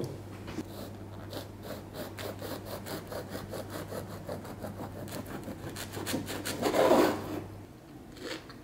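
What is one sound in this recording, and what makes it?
A knife saws through a crusty bread loaf.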